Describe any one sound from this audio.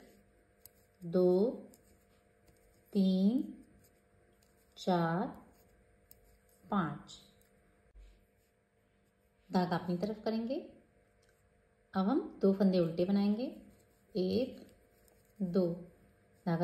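Knitting needles click softly against each other.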